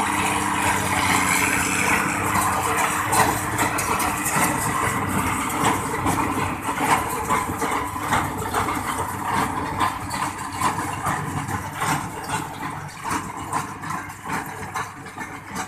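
A baler thumps and clanks rhythmically as it packs hay.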